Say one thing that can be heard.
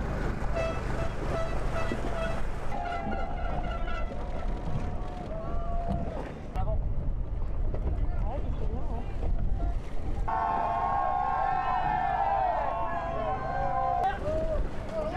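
A crowd cheers and whistles outdoors.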